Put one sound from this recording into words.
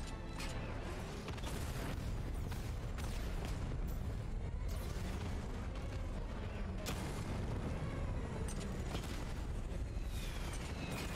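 Sharp blasts and impacts crack repeatedly.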